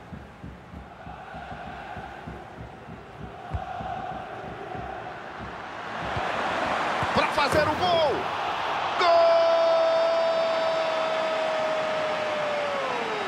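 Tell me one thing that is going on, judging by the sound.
A large crowd cheers and roars, growing louder.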